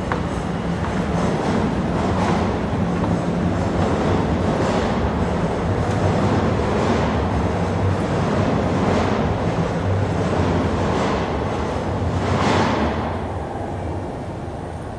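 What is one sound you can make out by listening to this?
Footsteps fall at an even pace on a hard floor.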